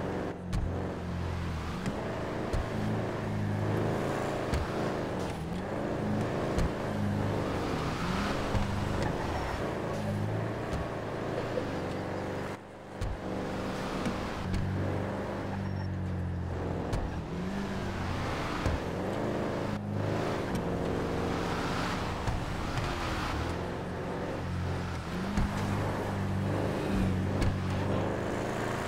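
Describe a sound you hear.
A car engine drones steadily as a car drives along a road.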